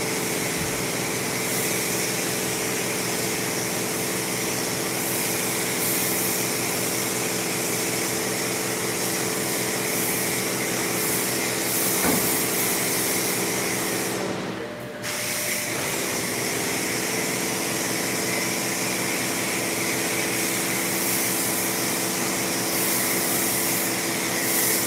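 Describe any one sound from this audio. A pressure washer sprays water against a truck with a steady loud hiss.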